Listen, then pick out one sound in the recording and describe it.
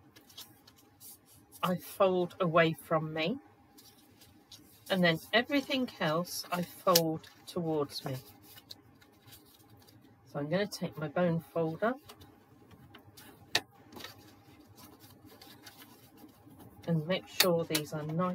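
Paper rustles and creases as it is folded by hand.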